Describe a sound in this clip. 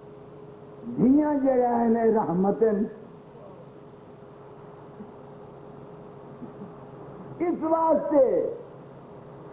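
An elderly man sings out a long, wavering line into a microphone, pausing between phrases.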